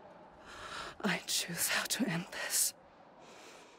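A young woman cries out in strained groans.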